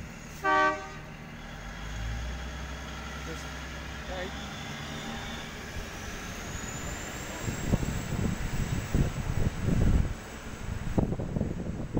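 A diesel train rumbles slowly along the tracks nearby.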